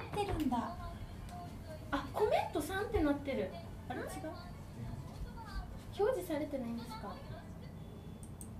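Young women talk and laugh close to a microphone.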